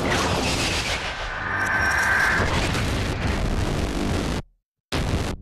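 Explosions boom and debris crashes down.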